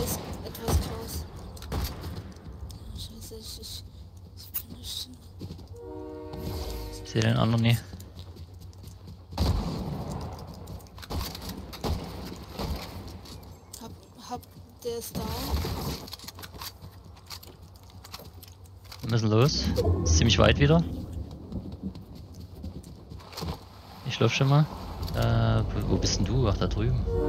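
Footsteps patter on grass and dirt.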